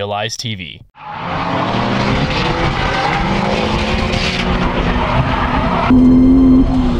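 Car engines roar in the distance as cars drift around a track.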